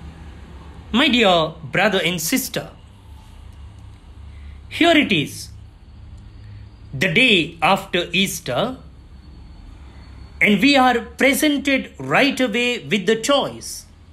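An elderly man speaks calmly and solemnly.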